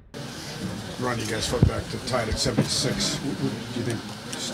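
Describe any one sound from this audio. A man speaks calmly into microphones close by.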